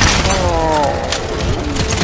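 A gun clicks and clatters while being reloaded.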